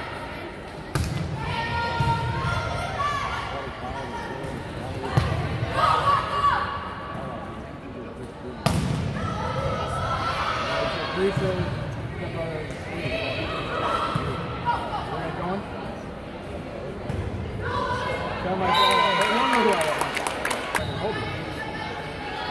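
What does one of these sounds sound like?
A volleyball is struck hard with a sharp smack in an echoing gym.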